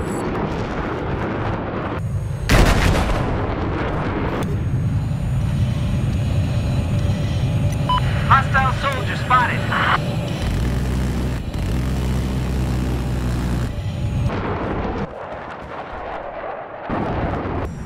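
A jet fighter's afterburner blasts with a deep rush.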